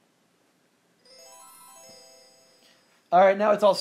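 A short electronic chime rings out as a game starts up.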